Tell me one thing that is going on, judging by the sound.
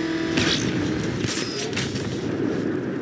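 A powerful engine roars at speed.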